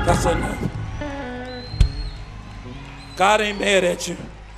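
A man preaches with animation into a microphone, heard through loudspeakers in a large hall.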